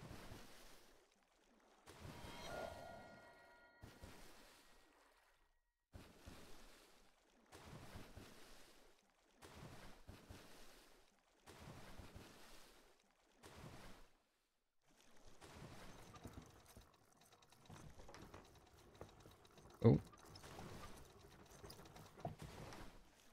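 Water splashes rhythmically as a swimmer strokes through it.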